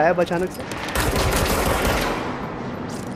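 An explosion booms in a game.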